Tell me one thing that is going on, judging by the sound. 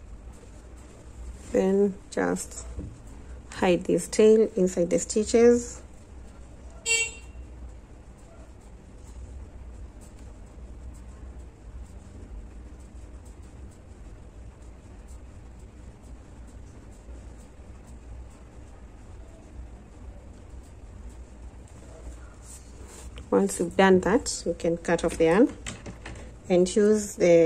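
Soft yarn rustles as hands handle a crocheted piece.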